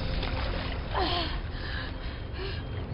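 A young woman screams in panic.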